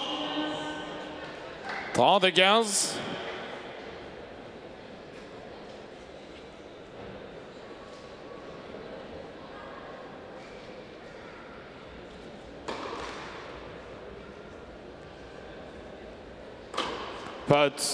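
A man announces the score calmly over a loudspeaker in an echoing hall.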